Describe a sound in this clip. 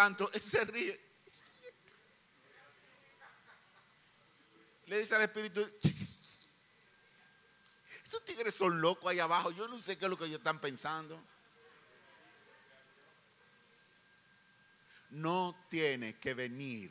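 An elderly man speaks with animation into a microphone, in bursts with long pauses.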